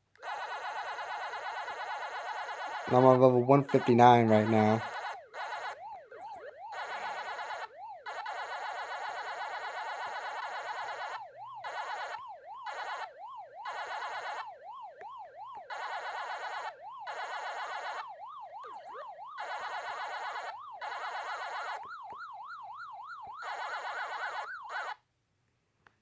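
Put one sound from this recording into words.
An arcade maze game plays its rapid electronic munching sound as the player gobbles dots.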